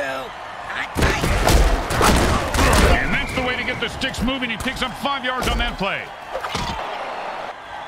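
Armoured players crash into each other with heavy thuds.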